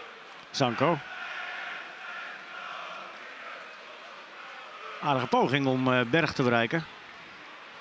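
A stadium crowd murmurs and cheers in the distance.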